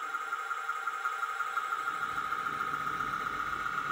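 A small model train engine hums and clicks as it rolls along the track.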